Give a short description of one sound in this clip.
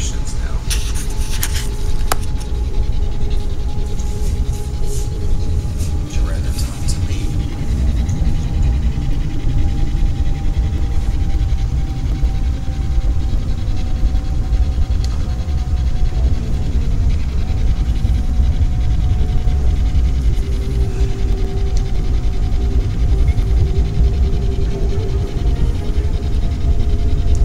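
A handheld radio hisses with steady static and a faint whine.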